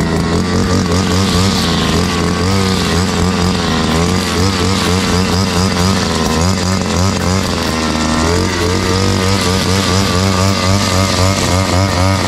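A string trimmer engine whines loudly and steadily, its pitch wavering.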